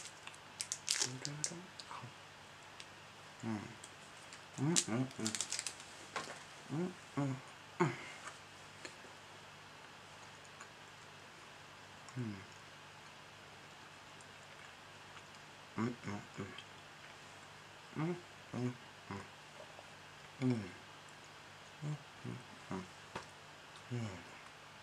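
A young man speaks softly and close to a microphone, in short bursts with pauses.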